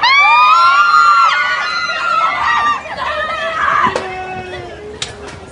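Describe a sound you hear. A crowd of young women screams with excitement close by.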